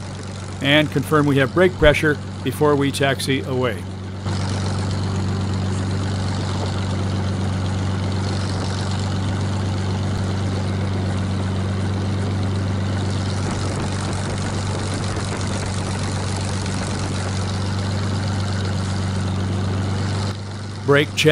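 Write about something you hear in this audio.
A propeller aircraft engine drones steadily at close range.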